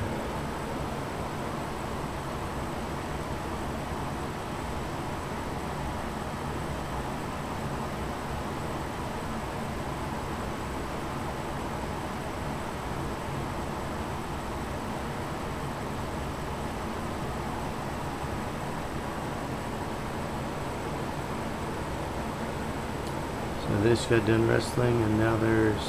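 A cat purrs softly and steadily close by.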